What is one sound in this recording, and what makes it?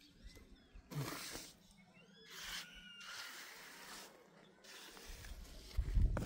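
A trowel scrapes and smooths wet concrete.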